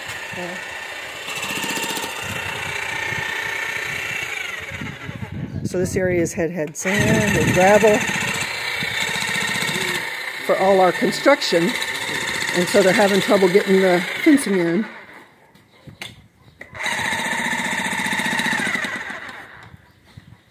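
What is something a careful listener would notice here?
A power drill whirs in short bursts outdoors.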